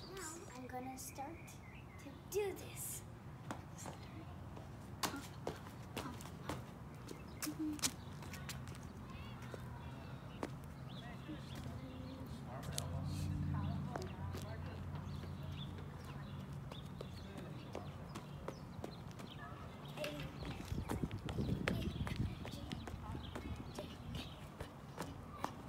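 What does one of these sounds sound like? Shoes tap and scuff on concrete as a young girl hops.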